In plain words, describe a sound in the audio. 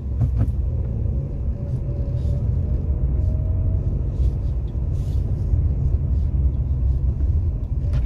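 A car engine hums steadily from inside as the car drives along.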